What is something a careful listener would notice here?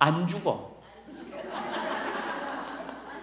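An audience of older women murmurs and laughs.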